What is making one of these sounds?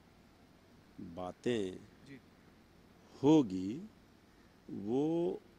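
A middle-aged man speaks calmly into a close microphone, in short phrases.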